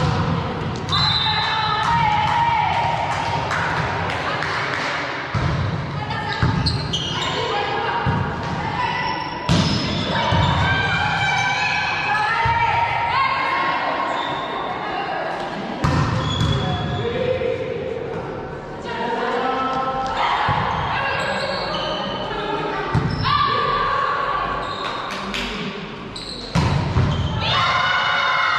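A volleyball is struck with sharp slaps during a rally.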